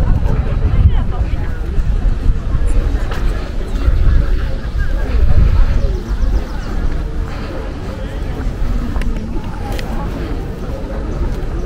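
Wind blusters and rumbles outdoors.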